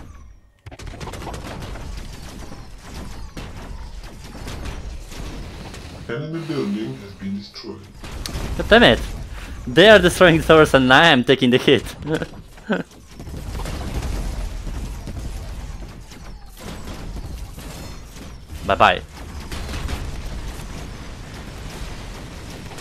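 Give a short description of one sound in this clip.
Laser guns fire in rapid bursts in a video game.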